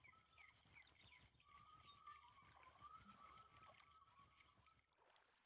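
A fishing reel clicks as it winds in line.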